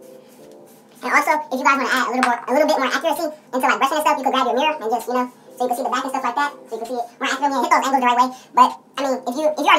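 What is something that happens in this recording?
A teenage boy talks close to the microphone with animation.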